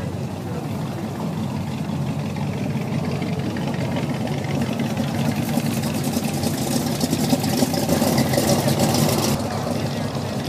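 Tyres hum on the road as cars pass.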